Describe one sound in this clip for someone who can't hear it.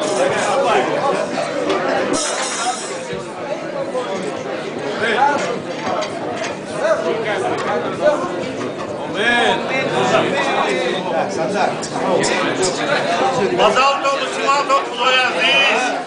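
A crowd of men chatters close by in a packed, echoing room.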